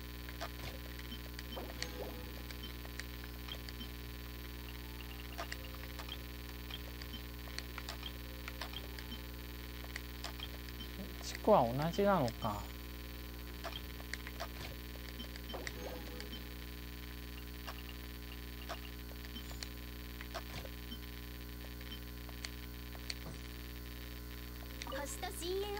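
Soft menu clicks tick now and then as selections change.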